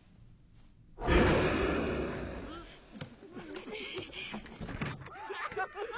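A group of young men and women laugh and cheer loudly.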